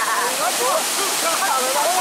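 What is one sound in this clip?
Water splashes as a swimmer strokes.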